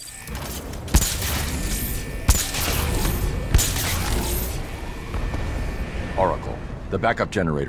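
Electricity crackles and zaps loudly.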